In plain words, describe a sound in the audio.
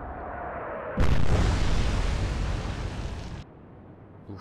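Shells explode in the sea, throwing up water with a heavy rumble.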